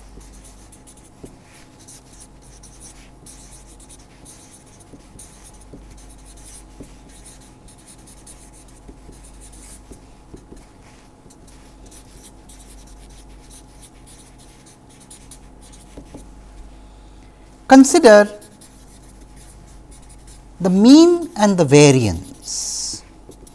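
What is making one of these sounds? A felt marker squeaks and scratches softly across paper.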